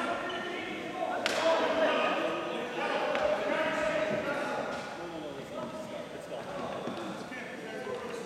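Men talk and call out over one another in a large echoing gym.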